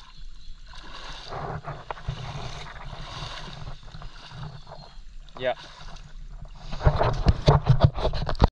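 Footsteps squelch through soft wet mud.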